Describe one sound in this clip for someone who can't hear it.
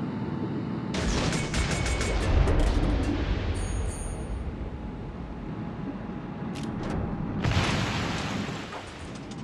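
Ship guns fire in loud booming volleys.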